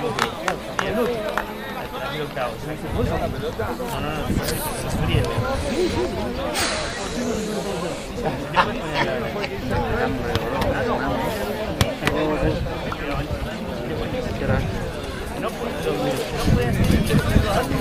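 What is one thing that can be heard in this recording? Players call out to each other on an open field.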